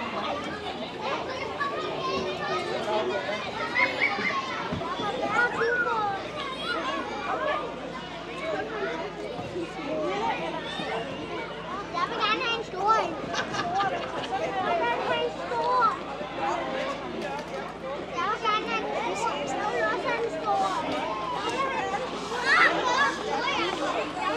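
Children chatter and shout excitedly outdoors.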